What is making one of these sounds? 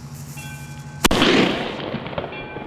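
A firework bursts with a loud, booming bang.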